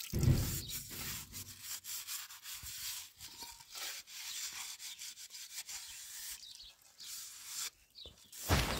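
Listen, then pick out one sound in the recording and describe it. A sponge scrubs a plate with a soft scratching sound.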